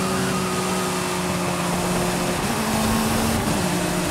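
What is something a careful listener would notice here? Tyres screech on asphalt through a drift.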